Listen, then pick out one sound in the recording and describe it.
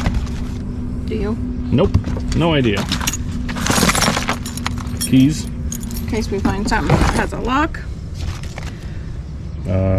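Items clatter and knock as they are moved in a cardboard box.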